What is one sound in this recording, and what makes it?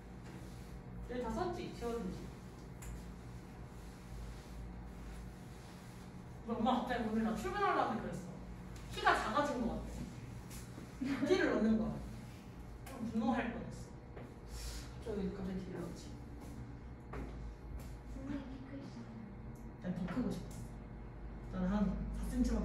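A young woman speaks calmly to a room, her voice slightly muffled.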